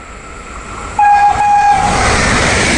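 An electric train's horn blares twice.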